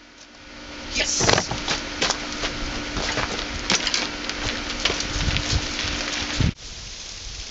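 A bicycle rattles and clatters as it rides over rough ground.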